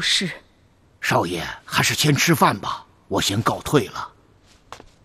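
An elderly man speaks.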